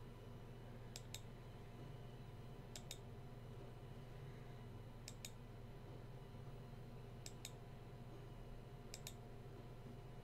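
Short soft clicks sound every couple of seconds.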